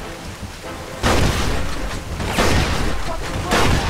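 A shotgun fires loud blasts that echo.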